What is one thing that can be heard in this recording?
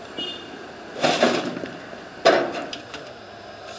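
Bricks clatter as they are tipped out of a wheelbarrow.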